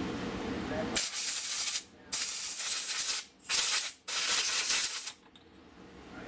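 Compressed air hisses from a blow gun in loud, repeated bursts.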